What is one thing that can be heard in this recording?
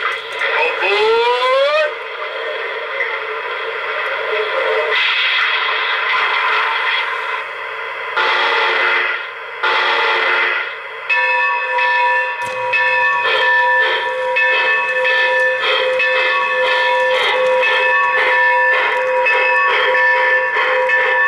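A model steam locomotive hisses and chuffs loudly.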